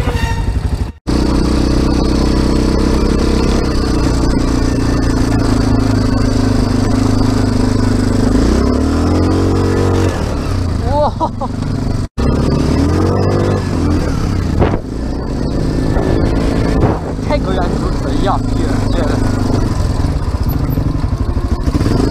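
A quad bike engine roars and revs up and down as it drives over rough ground.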